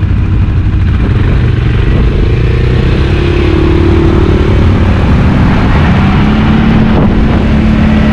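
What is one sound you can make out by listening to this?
A quad bike engine revs up, its pitch rising and falling.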